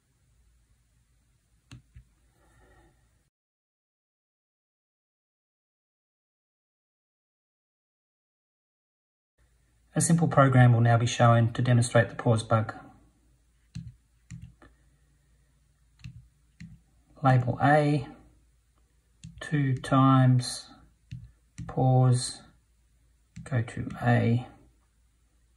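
Calculator keys click softly as a finger presses them.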